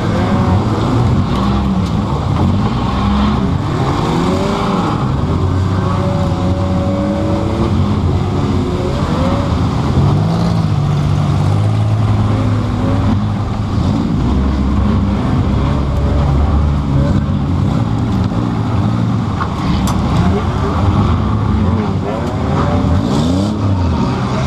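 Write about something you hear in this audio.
A car engine roars and revs loudly up close, rising and falling in pitch.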